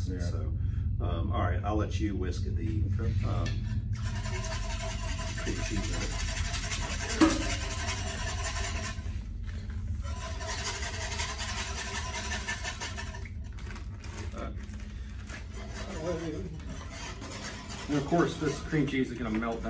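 A spoon scrapes and stirs in a heavy pot.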